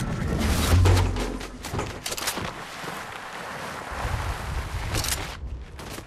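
Footsteps slide and crunch on snow.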